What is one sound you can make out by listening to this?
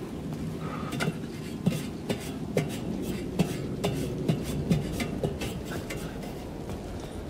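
Metal ladder rungs clank under climbing footsteps.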